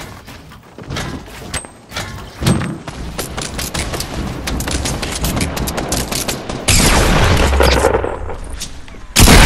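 Wooden planks clatter and knock quickly as structures are built.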